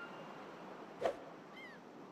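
A putter taps a golf ball with a soft knock.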